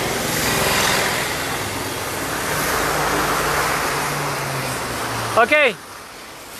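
A truck rumbles by close on a wet road.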